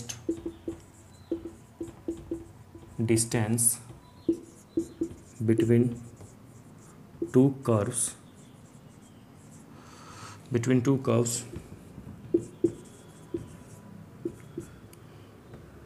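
A marker squeaks and taps on a whiteboard in short strokes.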